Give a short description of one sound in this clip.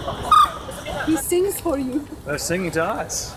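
Birds call nearby.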